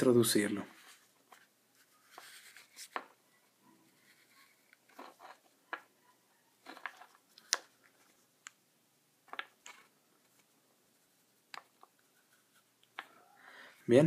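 Rubber tubing rubs and clicks softly as it slides over a cable.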